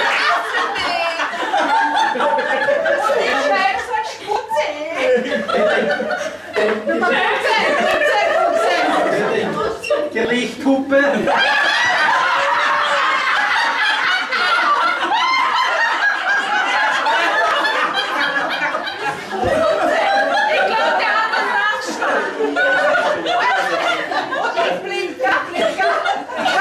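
A group of men and women talk and laugh loudly together nearby.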